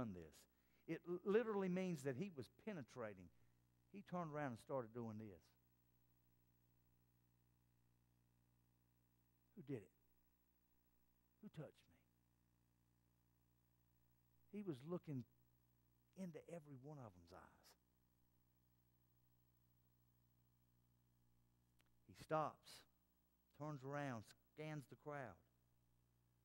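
A middle-aged man speaks calmly through a microphone in a large room, pausing between phrases.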